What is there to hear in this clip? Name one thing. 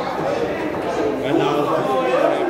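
Pool balls clack together on a table.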